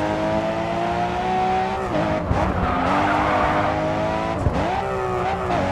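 A racing car engine revs high, dropping in pitch as gears shift.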